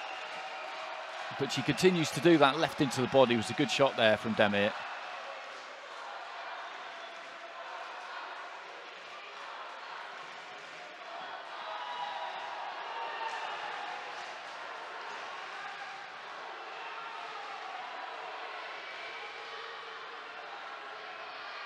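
A crowd murmurs steadily in a large hall.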